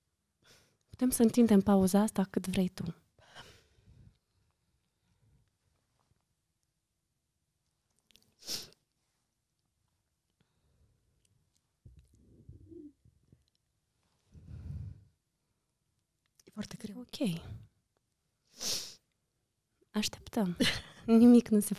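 A woman laughs softly.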